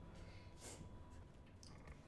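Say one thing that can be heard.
A young girl sobs quietly.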